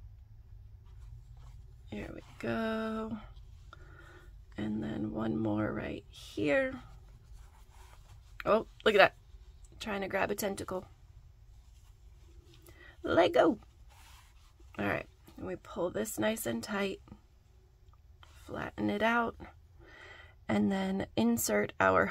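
Hands softly rustle and squeeze fluffy yarn.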